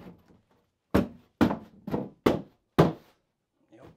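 Hands thump a panel against a wall.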